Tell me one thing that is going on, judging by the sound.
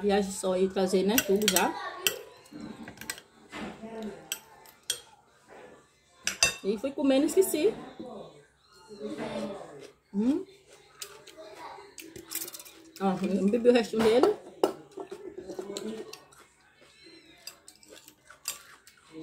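A fork scrapes and clinks against a dish.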